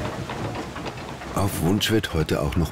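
Wooden gears clatter and knock as they turn.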